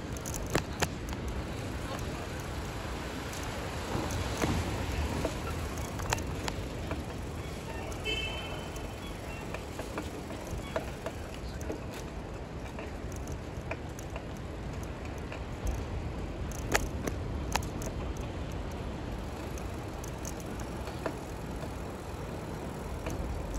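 Footsteps tap on pavement close by.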